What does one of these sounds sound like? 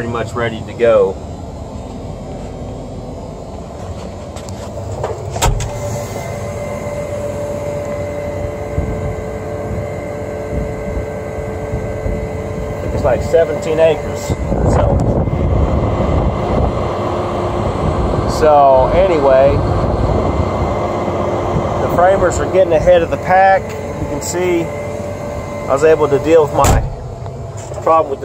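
A heavy diesel engine rumbles steadily from inside a cab.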